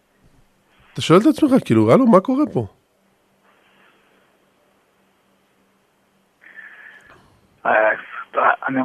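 An elderly man speaks warmly and cheerfully up close.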